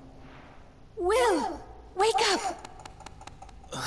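A young woman speaks urgently and anxiously, close by.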